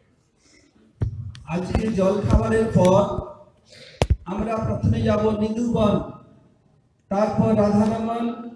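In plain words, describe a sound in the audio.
An elderly man speaks with animation into a microphone over a loudspeaker.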